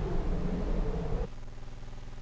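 A spaceship engine roars as the craft flies past.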